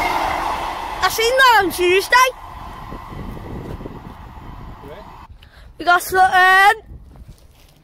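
A train horn blares loudly in two tones.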